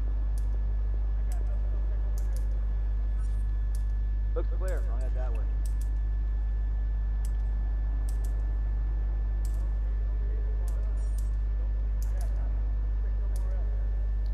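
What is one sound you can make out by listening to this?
Sparks crackle and fizz from a burning junction box.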